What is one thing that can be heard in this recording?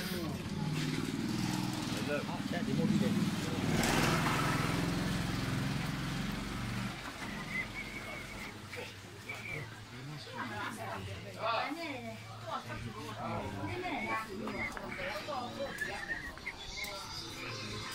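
People chatter nearby in a busy street.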